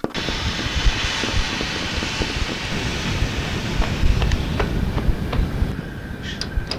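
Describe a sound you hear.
A kettle hisses with steam.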